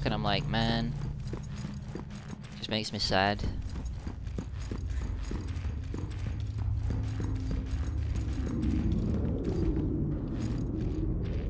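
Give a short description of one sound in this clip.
Footsteps thud steadily on stone.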